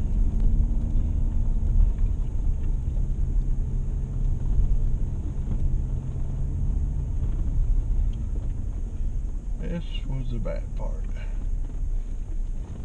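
Tyres rumble and crunch over a gravel track.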